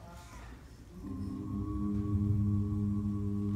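A group of young singers starts singing together through microphones.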